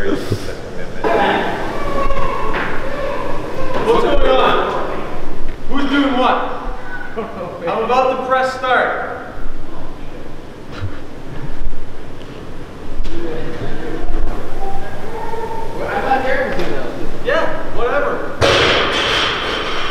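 A man coaches loudly from across the room.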